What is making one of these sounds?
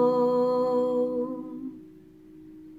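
A young woman sings softly, close by.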